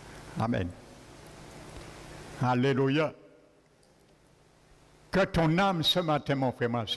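A man speaks with feeling into a microphone in an echoing hall, pausing between phrases.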